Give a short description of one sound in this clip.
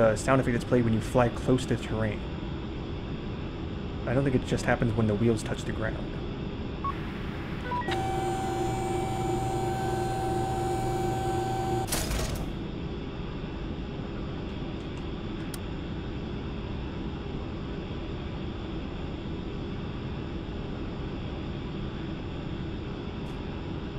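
An aircraft engine hums steadily.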